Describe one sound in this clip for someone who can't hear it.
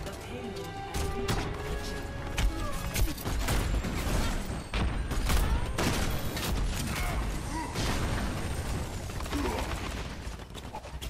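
A grenade launcher fires with repeated heavy thumps.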